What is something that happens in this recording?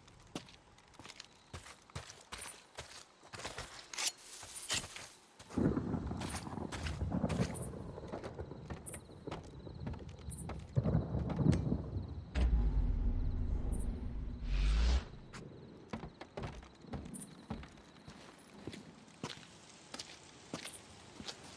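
Footsteps tread on dirt and wooden boards.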